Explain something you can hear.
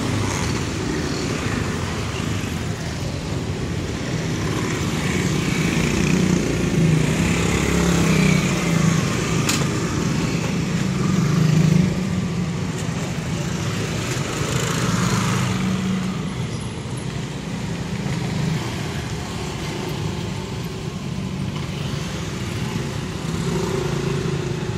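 Motorcycle engines hum and putter close by as they ride past.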